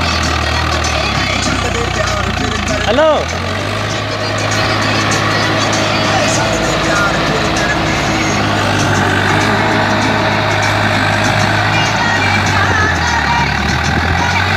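A tractor engine rumbles steadily close by.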